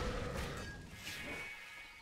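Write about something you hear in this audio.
A magic spell bursts with a whoosh.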